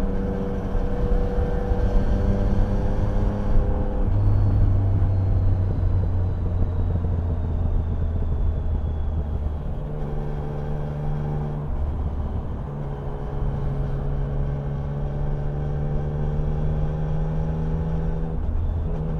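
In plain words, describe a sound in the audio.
A motorcycle engine hums steadily, shifting pitch as gears change.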